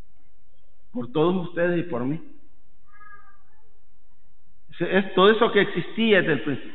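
A man speaks into a microphone with a measured, reverent voice in a large echoing hall.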